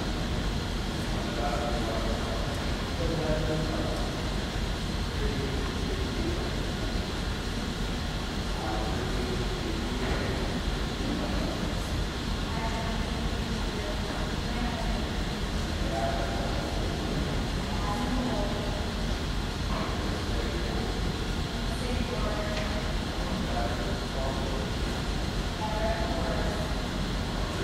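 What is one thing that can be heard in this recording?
A man speaks calmly and slowly, heard from a distance in a large echoing hall.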